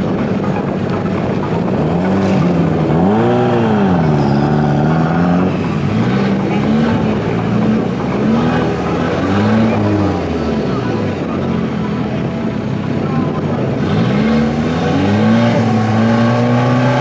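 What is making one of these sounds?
A twin-turbo V10 supercar engine revs and burbles.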